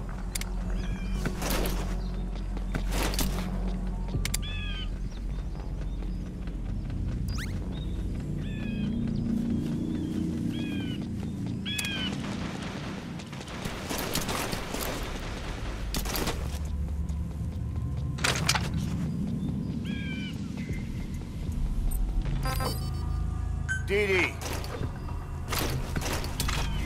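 Gunshots crack sharply, again and again.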